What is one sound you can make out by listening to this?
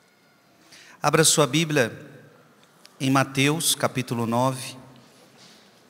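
A man speaks calmly and solemnly into a microphone in a large echoing hall.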